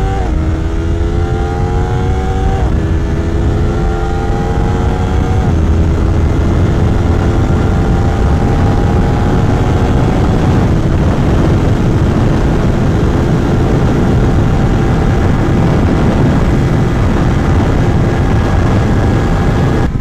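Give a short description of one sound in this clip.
A motorcycle engine revs up through the gears, rising in pitch and dropping at each shift.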